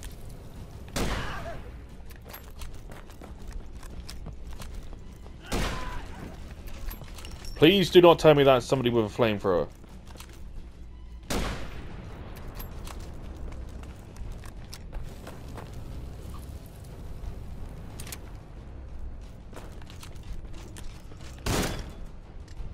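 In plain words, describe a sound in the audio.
Gunshots ring out one at a time, with short echoing tails.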